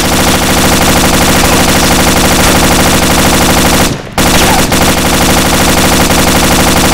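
A machine gun fires in rapid, unbroken bursts, pausing briefly once.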